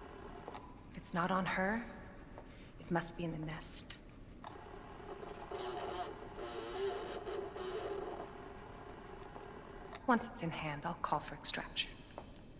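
A young woman speaks calmly and quietly into a radio.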